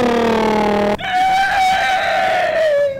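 A middle-aged man shouts with animation through a microphone.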